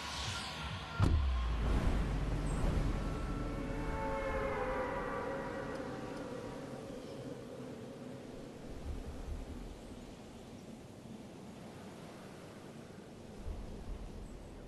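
Wind rushes loudly past a falling figure, then slowly quietens.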